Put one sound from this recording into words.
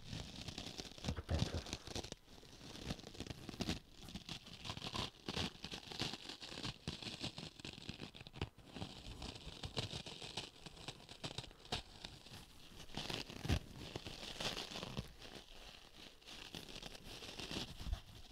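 Fingers squeeze and scratch a sponge close up, with crisp rustling and crackling.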